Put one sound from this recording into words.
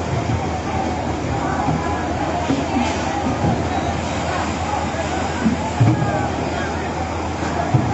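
Water splashes from a bucket onto a roof.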